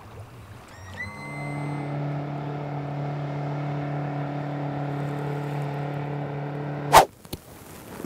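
An outboard motor drones steadily as a small boat speeds across the water.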